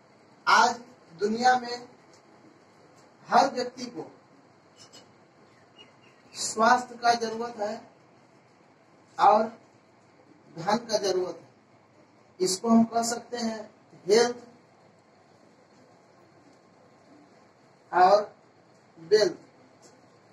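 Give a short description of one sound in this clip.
A young man speaks in short bursts, explaining with pauses.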